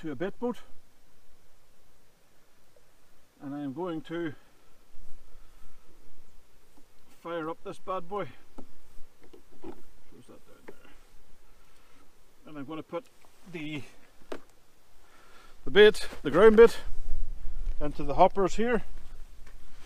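A man talks calmly in short phrases, close by.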